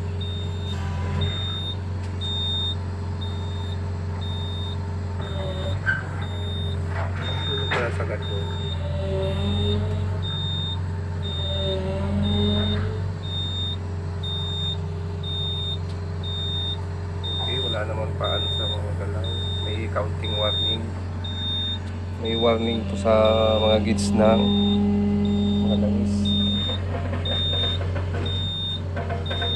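An excavator engine rumbles steadily close by.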